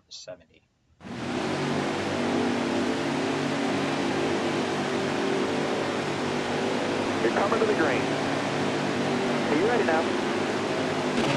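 Race car engines roar steadily.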